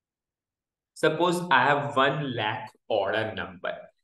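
A man talks calmly through a microphone, close by.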